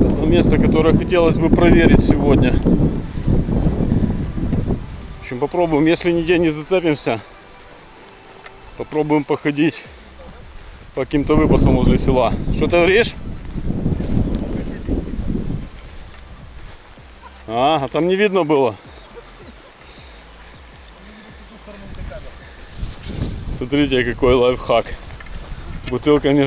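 A man talks calmly and close up, outdoors.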